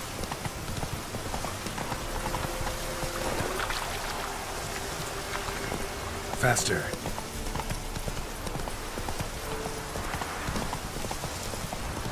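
A horse gallops with quick, steady hoofbeats.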